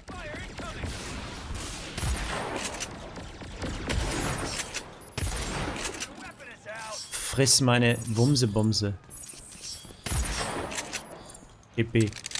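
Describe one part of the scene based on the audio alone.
Energy guns fire in rapid bursts.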